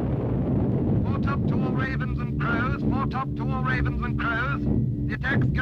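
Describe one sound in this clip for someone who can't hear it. A man speaks tersely over a crackly radio intercom.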